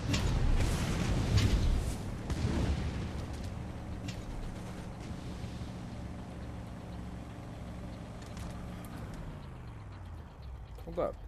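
A vehicle engine roars steadily and then winds down.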